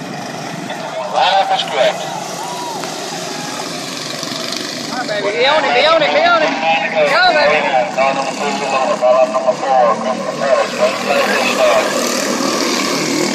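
Small racing kart engines buzz and whine as the karts speed past.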